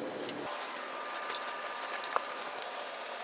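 Cables and metal gear clatter and click as they are handled.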